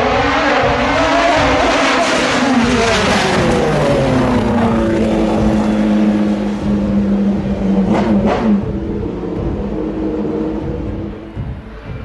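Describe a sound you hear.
A racing car engine screams past close by and fades down the road.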